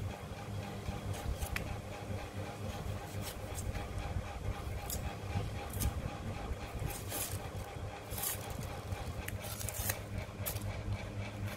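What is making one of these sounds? A knife scrapes and crackles against dry onion skin.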